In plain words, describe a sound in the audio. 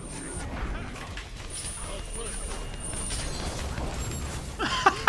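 Magic blasts and spell effects crackle and boom in a video game battle.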